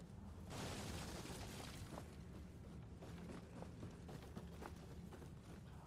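Footsteps run across wooden boards.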